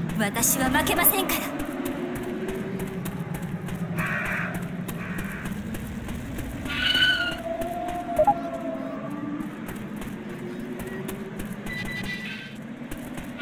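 Footsteps walk steadily on a hard floor.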